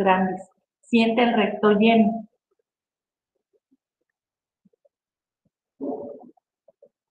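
An elderly woman speaks calmly through an online call.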